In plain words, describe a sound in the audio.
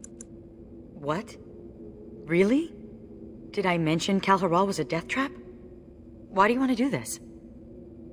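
A man speaks in a deep, calm voice, close by.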